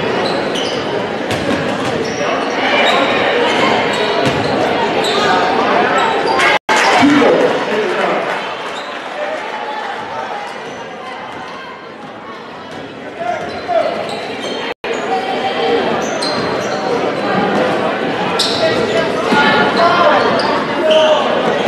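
A crowd in a large echoing gym cheers and chatters.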